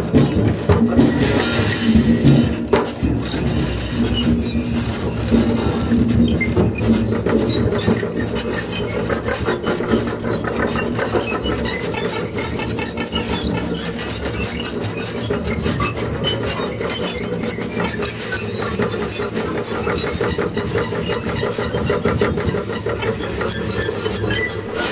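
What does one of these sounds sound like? Cymbals shimmer and clatter as a man plays them by hand.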